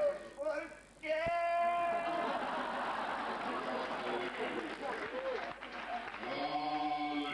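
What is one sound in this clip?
A performer sings loudly through a microphone.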